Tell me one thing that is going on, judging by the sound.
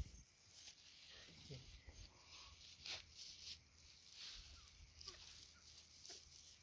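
Chickens cluck softly nearby.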